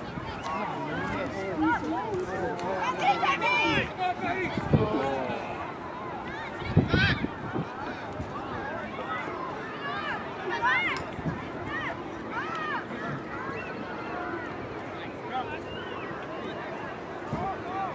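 Young players shout and call to each other outdoors across an open field.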